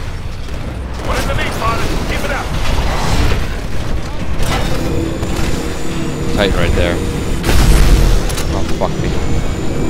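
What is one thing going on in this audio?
Heavy gunfire booms and rattles in bursts.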